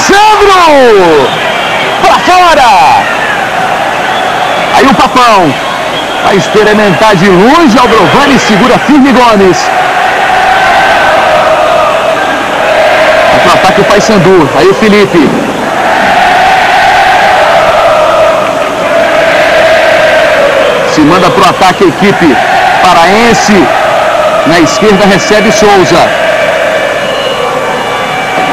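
A large crowd roars and cheers throughout a big stadium.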